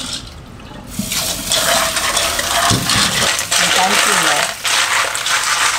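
Tap water runs and splashes into a metal pot.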